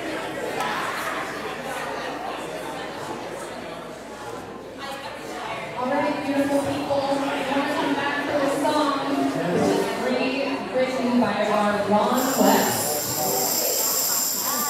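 A drummer taps on a drum kit.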